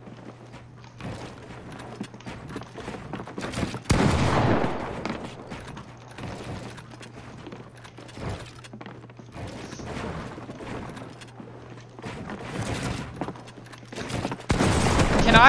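A young man talks into a headset microphone with animation.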